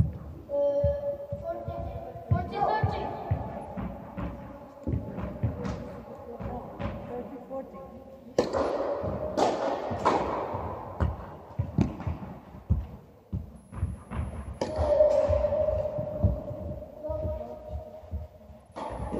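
Tennis balls are struck by rackets with sharp pops in a large echoing hall.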